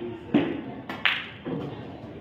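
Billiard balls clack together.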